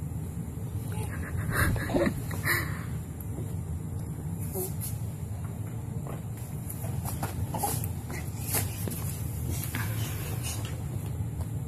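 A baby whimpers and cries out in short bursts close by.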